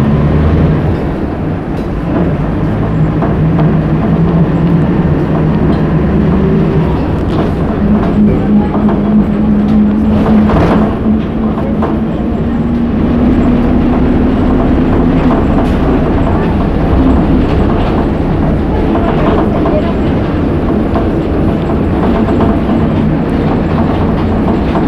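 A bus engine drones steadily while the bus drives.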